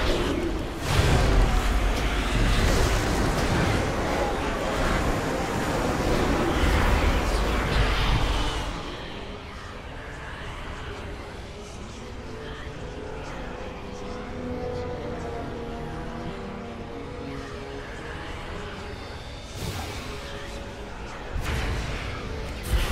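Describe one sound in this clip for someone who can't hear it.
Magic blasts crackle and roar in a fight.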